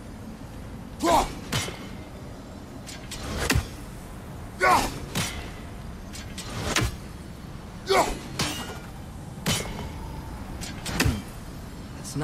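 An axe whooshes sharply through the air, again and again.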